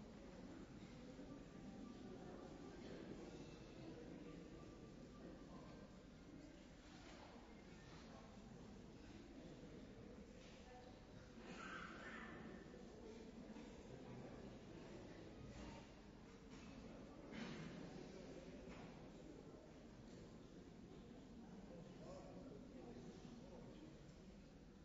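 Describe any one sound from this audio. A crowd murmurs softly in a large hall.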